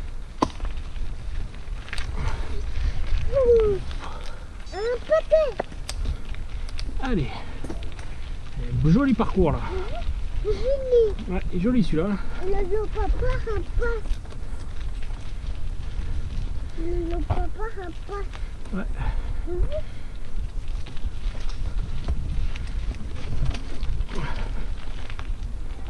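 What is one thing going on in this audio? Wind rumbles steadily past the rider.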